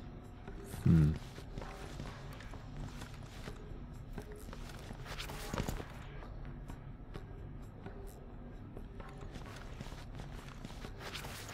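Footsteps tap on a hard floor as a man walks.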